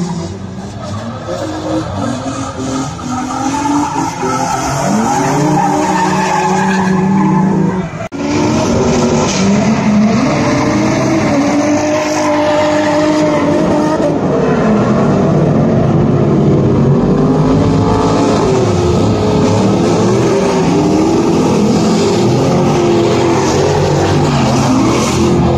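Tyres squeal on asphalt.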